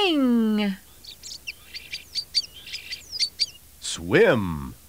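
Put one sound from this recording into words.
A small bird sings quick high chirps.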